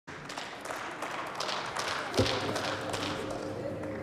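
Applause from a large audience rings through a large hall.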